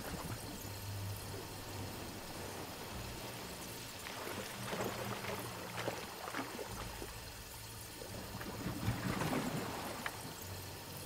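Waves wash gently onto a sandy shore.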